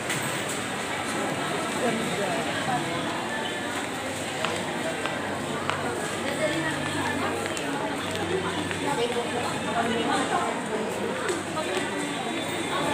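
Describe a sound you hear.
A crowd of shoppers chatters in a large, busy indoor hall.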